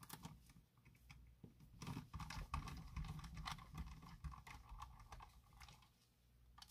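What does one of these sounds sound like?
Fingers rub and scrape across a plastic case.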